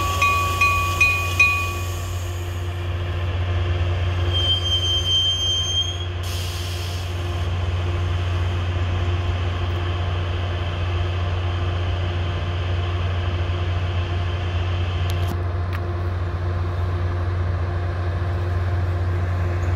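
A train engine idles with a steady low rumble.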